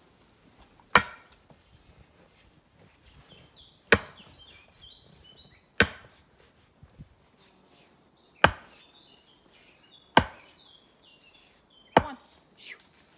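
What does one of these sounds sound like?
A sledgehammer strikes a wooden fence post with loud, sharp knocks.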